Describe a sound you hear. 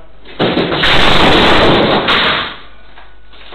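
Furniture crashes and clatters loudly onto a hard floor.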